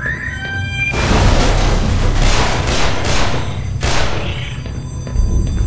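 A pistol fires several loud shots indoors.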